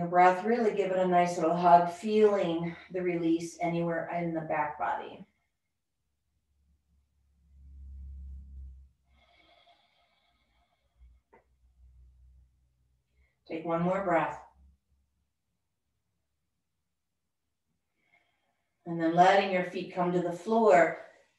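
A woman speaks calmly and slowly, close to a microphone, with long pauses.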